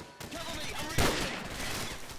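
A rifle fires a loud, sharp shot.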